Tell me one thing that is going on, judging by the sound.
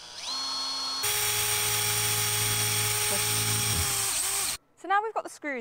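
A cordless drill whirs steadily into a tyre.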